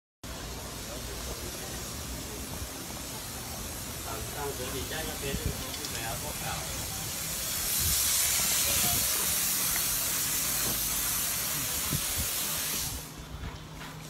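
Traffic and street noise hiss steadily outdoors.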